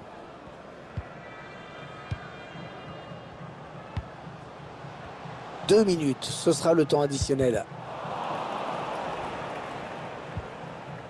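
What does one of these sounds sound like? A football is kicked with short dull thuds.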